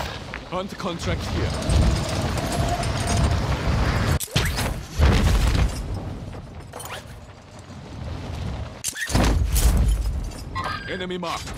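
Wind roars in gusts as air rushes past during a fast fall.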